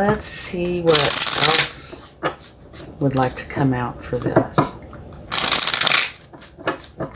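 Playing cards are shuffled with a quick, rustling riffle.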